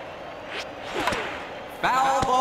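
A baseball bat cracks against a ball in a video game.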